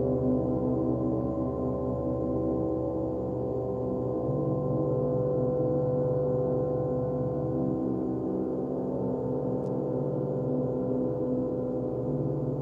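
Large gongs hum and shimmer in a deep, steady, swelling drone.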